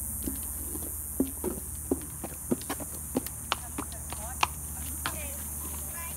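Horse hooves clop on hard ground.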